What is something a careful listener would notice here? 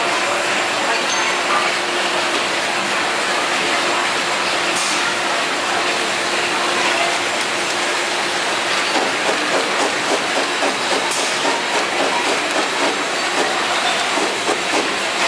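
A packaging machine runs with a steady mechanical whir.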